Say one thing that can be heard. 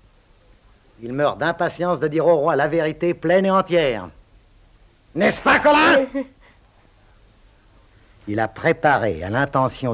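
An older man talks in a low, earnest voice.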